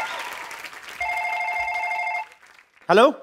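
A phone rings.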